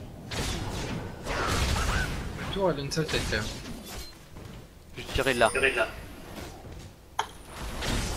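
Game weapons clash and spells burst in a fight.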